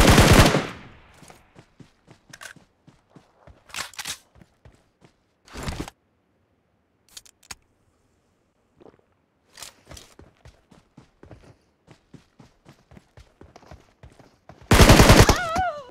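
Footsteps crunch over grass and rock.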